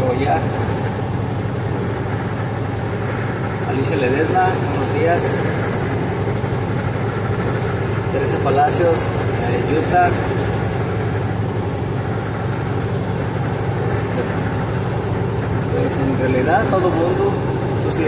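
A vehicle's engine hums steadily while driving on a highway.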